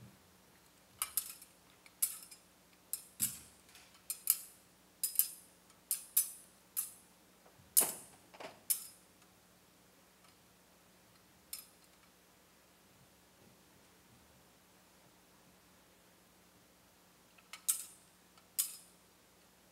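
A swinging censer clinks against its metal chains.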